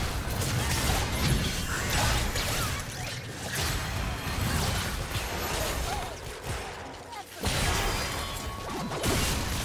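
Game spell effects crackle and whoosh during a busy battle.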